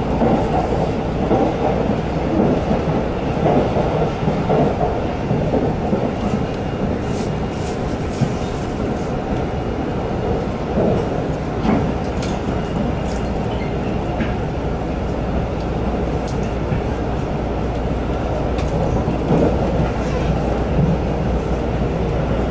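A train rumbles steadily along at speed.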